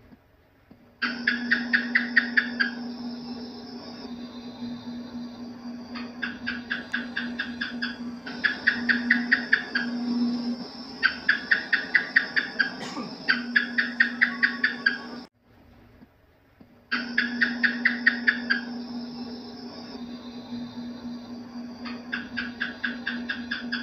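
A gecko chirps in quick bursts of sharp clicks.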